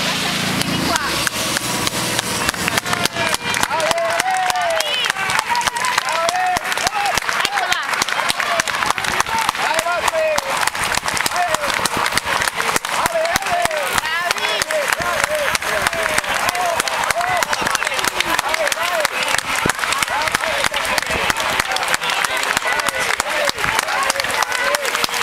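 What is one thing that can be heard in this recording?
A crowd of spectators cheers and claps.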